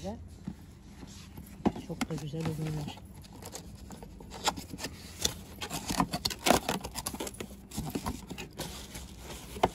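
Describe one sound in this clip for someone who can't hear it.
Cardboard box flaps rattle and thud as hands open a box.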